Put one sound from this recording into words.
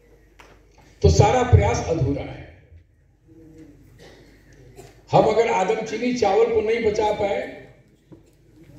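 A man speaks formally through a microphone and loudspeakers in a large echoing hall.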